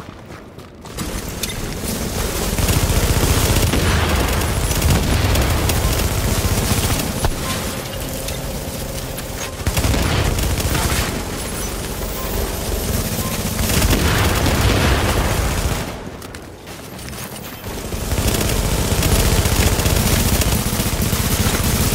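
Rifles fire in rapid bursts nearby.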